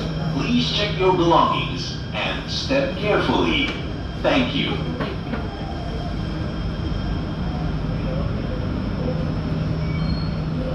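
A train rumbles and hums steadily while moving along the track.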